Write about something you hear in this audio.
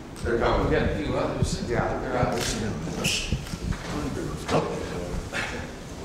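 Several men talk and chat close by.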